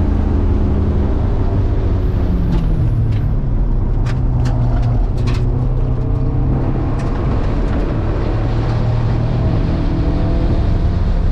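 A car engine slows, then revs up again as the gears change.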